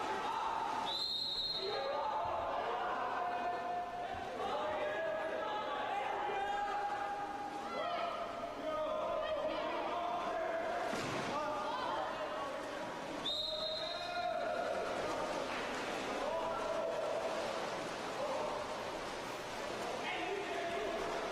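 Players splash and thrash in the water of an echoing indoor pool.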